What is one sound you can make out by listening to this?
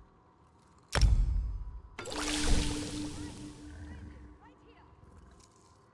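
A potion bubbles and fizzes as it is brewed.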